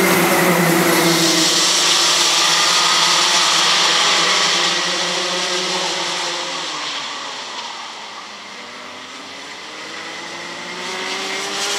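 Kart engines whine at a distance, rising and falling as karts race around a track.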